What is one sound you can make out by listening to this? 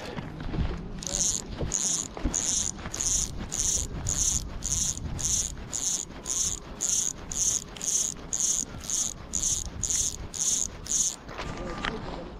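A fishing reel clicks in steady, even bursts.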